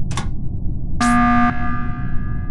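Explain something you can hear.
A game alarm blares for an emergency meeting.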